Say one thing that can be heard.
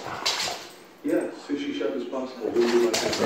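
A dog whines and howls in a wavering voice.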